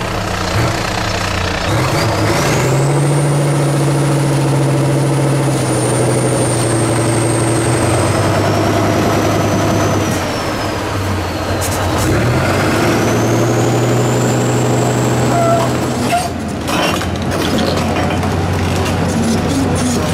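A heavy truck engine roars and revs hard through mud.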